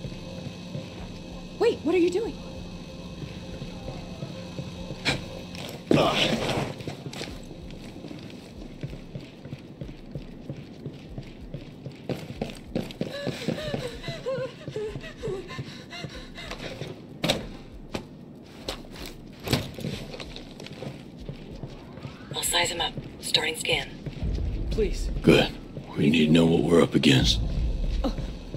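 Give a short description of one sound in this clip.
Boots tread softly on a hard floor.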